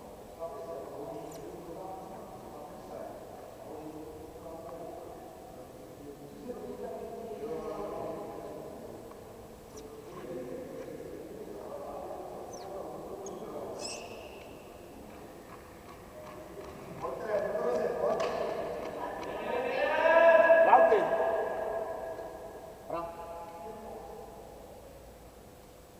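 Men and children chatter and call out in a large echoing hall.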